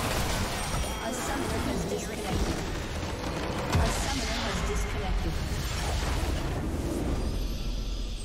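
Game spell effects crackle and blast as a base is destroyed.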